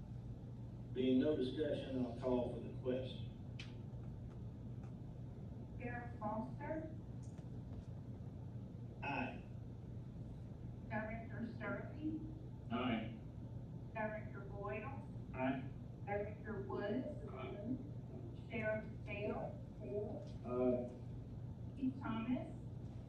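A man speaks calmly, with pauses, in a quiet room.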